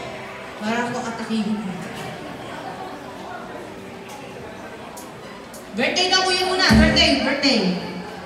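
A singer sings through loudspeakers in a large open space.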